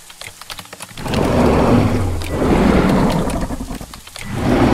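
A large creature roars loudly.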